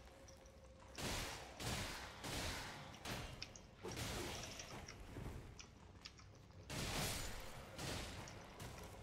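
A sword swings and strikes with sharp, heavy blows.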